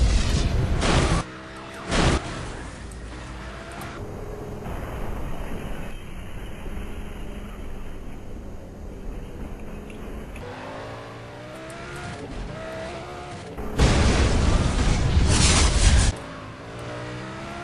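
A car engine roars and revs at high speed.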